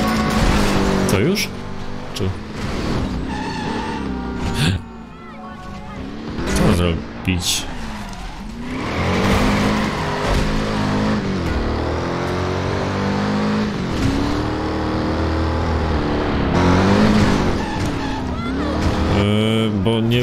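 A car engine revs and roars, rising and falling.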